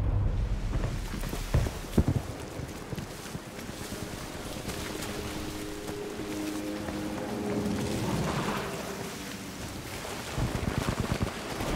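Footsteps thud quickly across sand and grass.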